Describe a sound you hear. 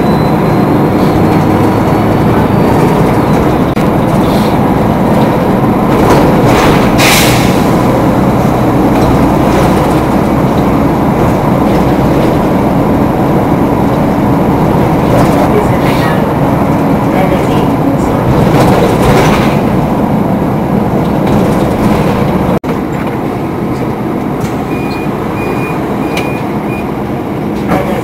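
A car engine hums steadily while driving, heard from inside.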